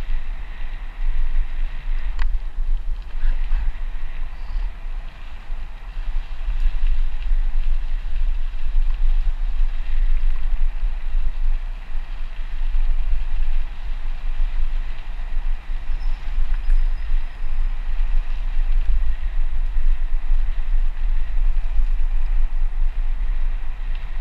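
Bicycle tyres crunch over a dirt path.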